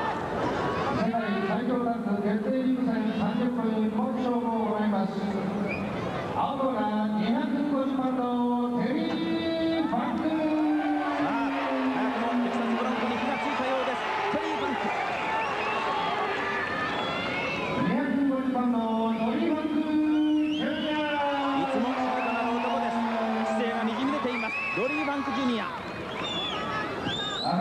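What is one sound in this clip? A man announces through a microphone in a large echoing hall, drawing out his words.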